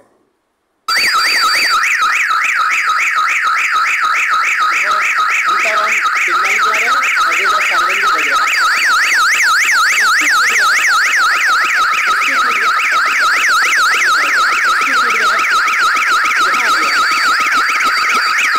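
A loud electronic hooter wails in a fast, rapidly warbling tone.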